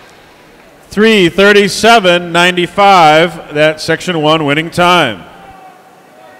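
A man announces loudly over a loudspeaker in a large echoing hall.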